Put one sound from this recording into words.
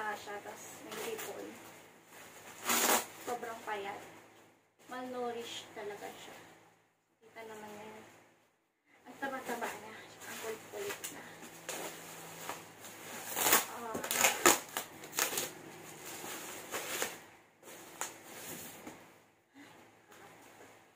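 A cardboard box scrapes and thumps.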